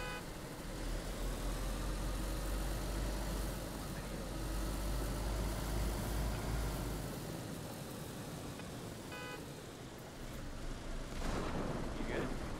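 A car engine hums steadily as the car drives over rough ground.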